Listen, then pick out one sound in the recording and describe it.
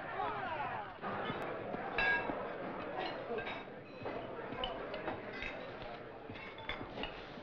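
Cutlery and dishes clink and clatter.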